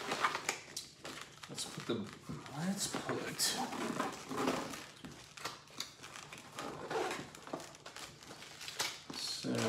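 Plastic packaging crinkles and rustles as it is handled.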